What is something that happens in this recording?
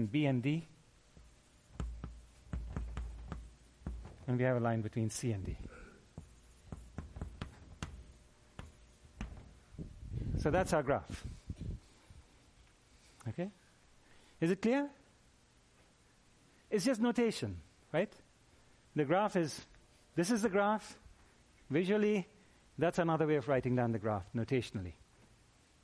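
A middle-aged man lectures with pauses.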